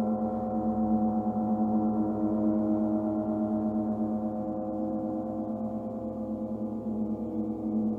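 A large gong hums with a deep, steady, pulsing ring in a large echoing hall.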